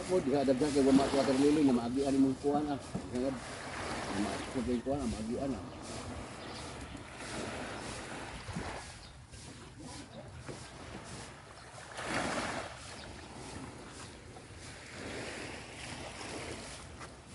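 Small waves lap gently at the water's edge.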